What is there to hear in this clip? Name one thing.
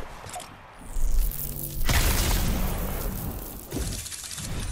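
Lightning crackles and booms.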